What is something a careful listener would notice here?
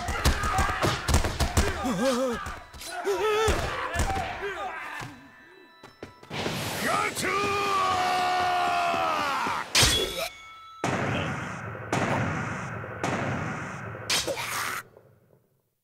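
Blows and thuds land in a fight.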